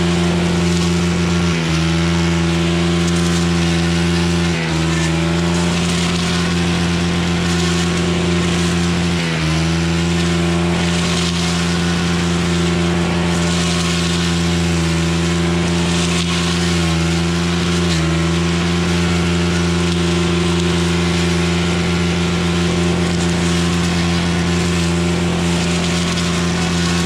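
A string trimmer engine drones loudly and steadily close by, dipping briefly now and then.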